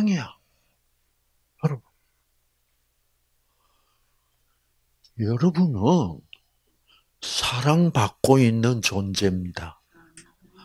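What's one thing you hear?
An elderly man speaks with animation into a microphone, with long pauses.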